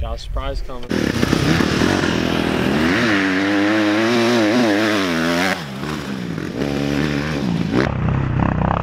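A dirt bike engine revs as it rides over a dirt track.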